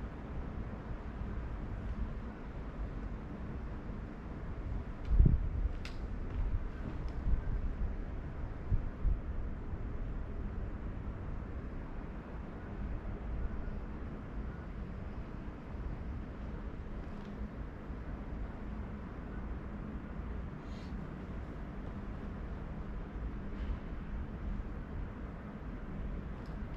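A young man talks calmly to the listener in a large, echoing room.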